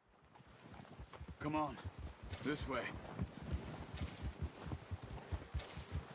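Horse hooves thud in snow.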